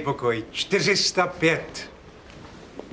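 An elderly man speaks calmly and politely, close by.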